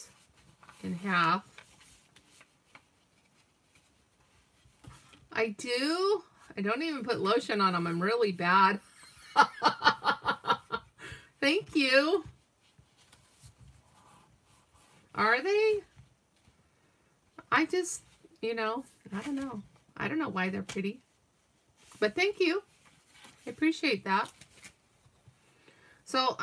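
Paper rustles and slides softly under hands.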